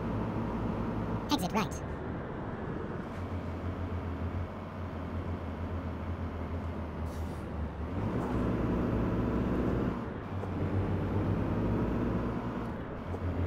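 A truck engine hums steadily while driving along a road.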